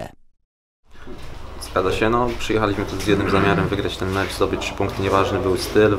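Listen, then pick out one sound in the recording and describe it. A young man speaks calmly into a microphone, close by.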